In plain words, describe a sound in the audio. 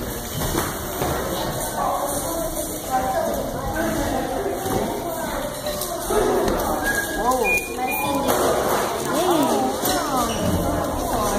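Children chatter and call out in an echoing hall.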